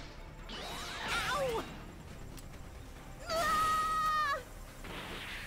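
An energy beam fires with a sharp, wavering electronic whine.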